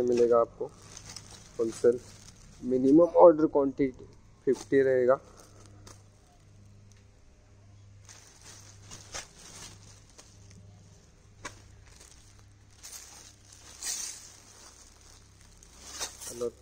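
Plastic wrapping crinkles as hands handle it.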